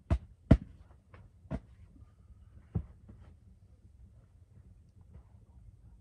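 Sleeping bags thump softly onto a bed.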